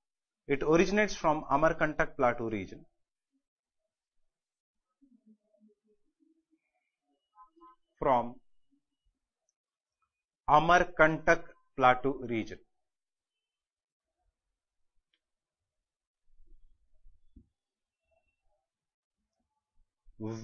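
A man speaks calmly and clearly close by, in short bursts.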